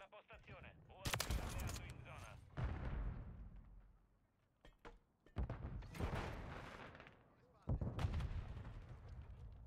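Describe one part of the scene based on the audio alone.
Rifle shots crack loudly.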